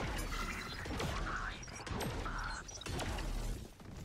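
A rifle is drawn with a short metallic clatter.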